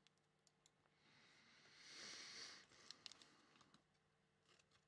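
Trading cards rustle and shuffle in a man's hands.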